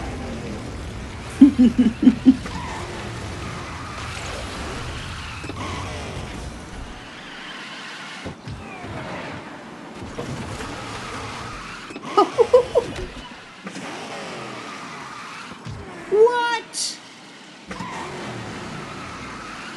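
A racing kart engine whines steadily at high speed.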